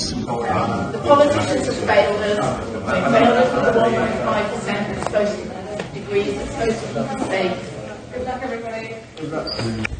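A crowd of people shouts and talks in an echoing hall.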